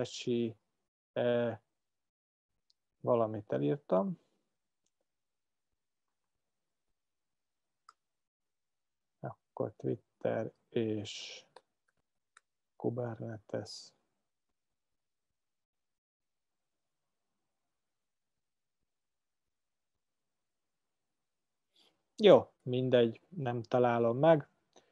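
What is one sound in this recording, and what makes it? A man talks calmly into a microphone, pausing often.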